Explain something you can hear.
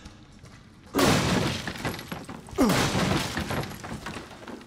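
Heavy blows smash wooden crates with a loud crunch.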